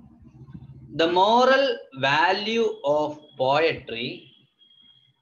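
A man speaks close by in a calm, explaining voice.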